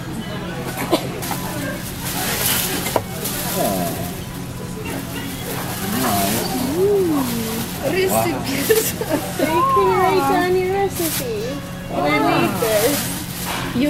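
Tissue paper rustles as a gift is unwrapped.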